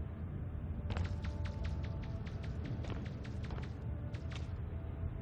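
Quick footsteps tap on a hard floor.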